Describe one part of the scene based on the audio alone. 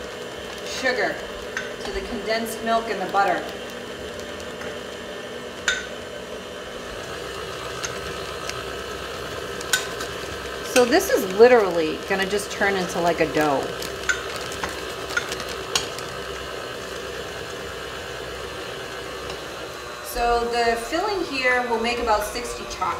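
An electric mixer whirs steadily.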